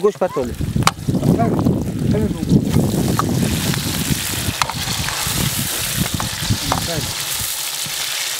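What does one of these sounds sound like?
Meat sizzles loudly in a hot pot.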